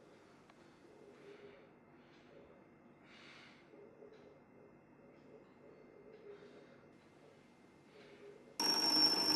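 A young man sighs and breathes heavily nearby.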